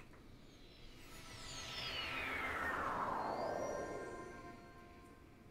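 A shimmering magical chime sweeps downward in pitch.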